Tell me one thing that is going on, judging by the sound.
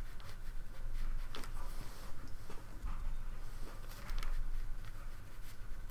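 Fabric rustles close by.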